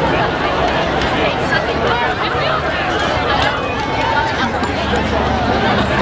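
A large crowd shouts, screams and cheers loudly outdoors.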